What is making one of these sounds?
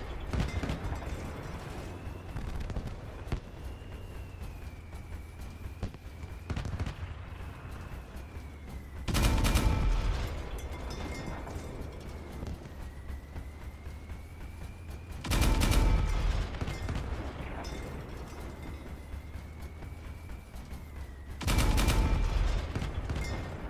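A heavy walking machine clanks and thuds steadily.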